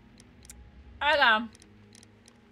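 A young woman squeals with laughter close to a microphone.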